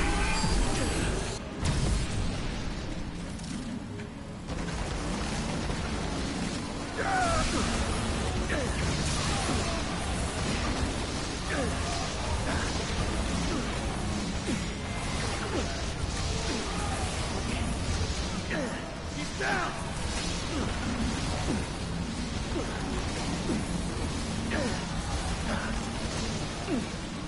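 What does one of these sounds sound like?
A deep rumbling drone fills the space.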